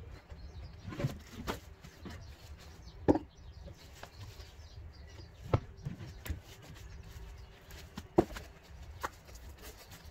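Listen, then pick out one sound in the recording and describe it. Boots step on paving and dead leaves.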